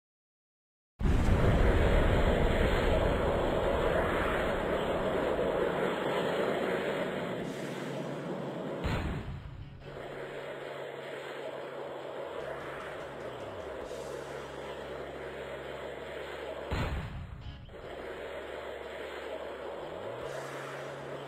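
A rocket engine roars.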